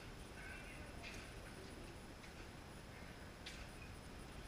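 Footsteps walk on a concrete floor, coming closer.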